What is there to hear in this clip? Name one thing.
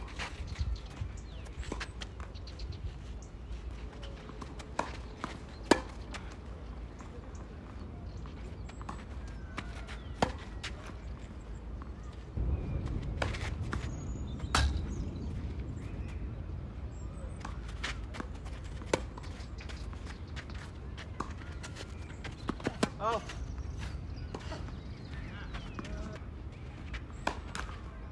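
Tennis balls bounce on a clay court.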